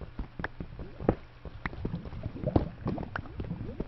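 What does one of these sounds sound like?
Lava bubbles and pops.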